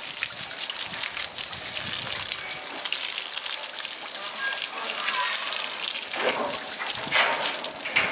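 A stream of water splashes onto a bear's fur.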